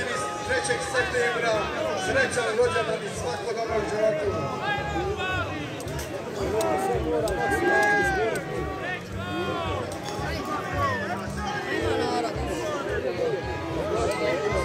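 A large outdoor crowd of men and women talks and calls out throughout.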